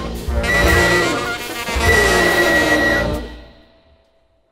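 A brass band plays a loud, full chord.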